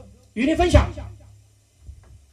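A man speaks briefly into a microphone, heard loudly through loudspeakers.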